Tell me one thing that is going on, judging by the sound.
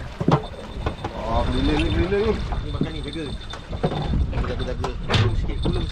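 A fishing reel clicks and whirs as line is reeled in.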